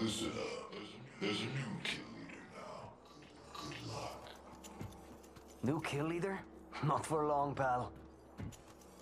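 A young man talks with animation through a microphone, close by.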